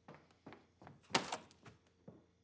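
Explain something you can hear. Keys jingle as they are picked up.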